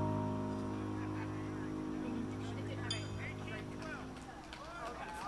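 An electric guitar chord rings out through an amplifier and slowly fades.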